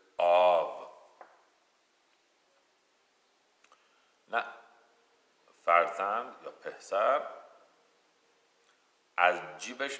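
A middle-aged man speaks calmly and slowly, close by, with long pauses.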